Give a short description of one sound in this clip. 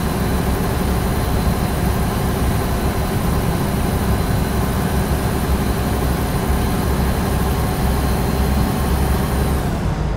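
A truck engine rumbles steadily while driving.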